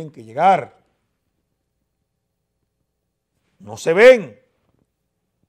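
A man speaks into a microphone in short, emphatic bursts.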